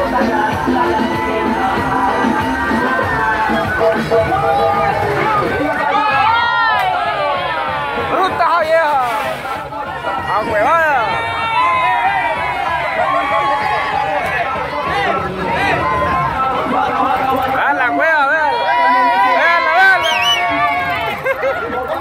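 Loud music with singing plays from a loudspeaker.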